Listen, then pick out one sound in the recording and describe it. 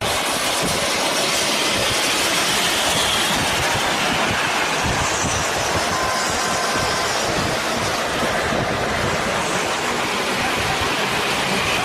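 Wind and road noise roar steadily from a moving vehicle.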